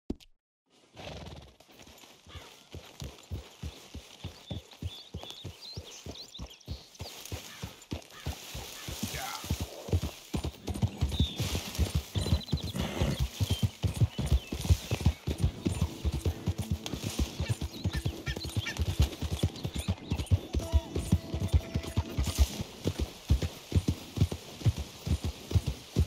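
A horse's hooves thud on soft ground at a walk, then a trot.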